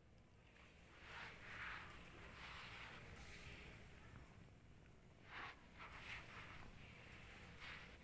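Cats crunch dry food from metal bowls.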